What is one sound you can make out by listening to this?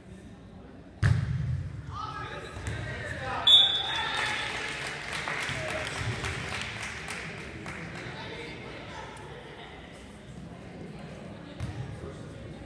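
A volleyball is struck with loud thumps.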